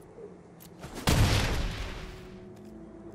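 A loud magical impact effect bursts out and fades.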